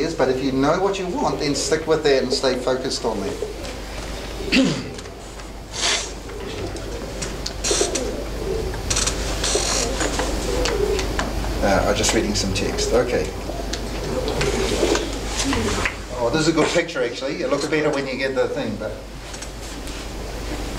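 A middle-aged man speaks calmly in a room with a slight echo.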